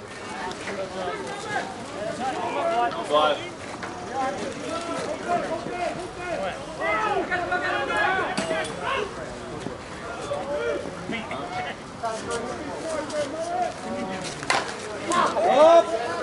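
Several women talk and call out to each other nearby, outdoors.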